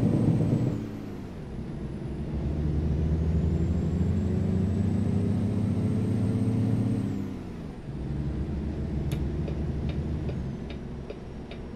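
A truck engine drones steadily, rising in pitch as it speeds up and dropping back as it shifts gears.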